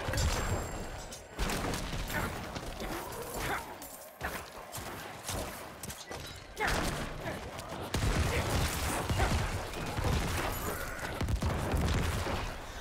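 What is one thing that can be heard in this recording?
Game combat sounds clash and thud.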